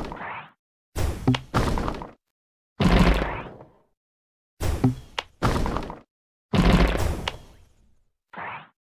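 Game bubbles pop in quick bursts.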